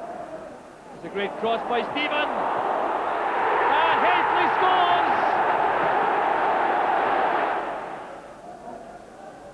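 A large stadium crowd roars and cheers loudly, then dies down.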